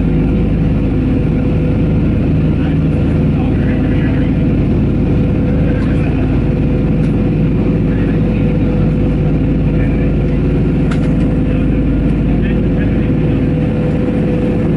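Propeller engines drone loudly and steadily.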